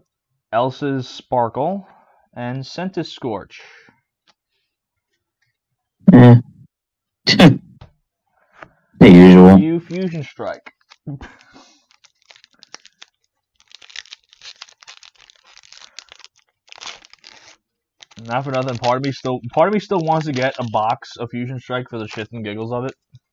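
Trading cards rustle and slide against each other.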